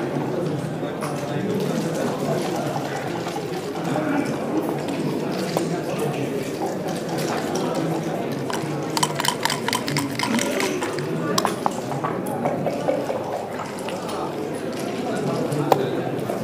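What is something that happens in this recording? Game pieces click and slide on a wooden board.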